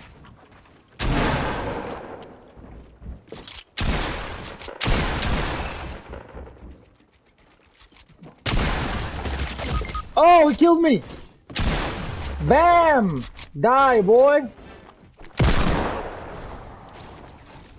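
Gunshots boom and ring out.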